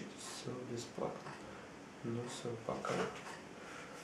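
A young man speaks quietly close by.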